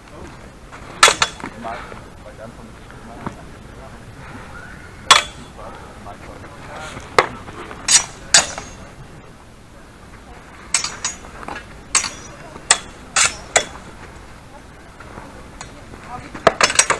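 Steel swords clash and clang sharply, again and again.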